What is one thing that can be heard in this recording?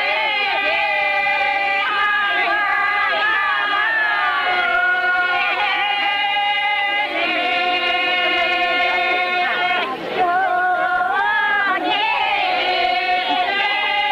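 A group of elderly women sing together loudly.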